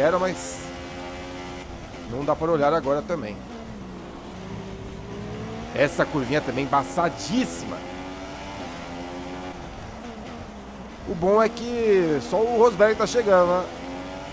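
A racing car engine whines at high revs, its pitch rising and falling with gear changes.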